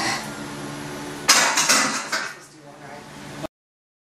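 A loaded barbell clanks onto a bench press rack.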